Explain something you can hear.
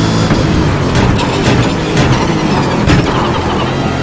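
Gear changes crack sharply as the car downshifts.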